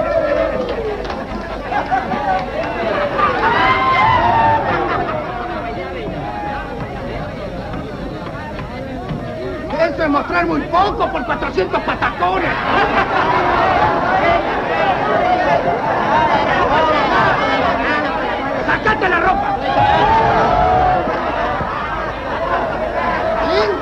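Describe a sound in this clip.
A crowd of men and women talks and laughs in a crowded room, heard on an old film soundtrack.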